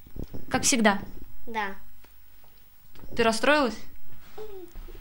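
A young girl speaks softly and brightly, close by.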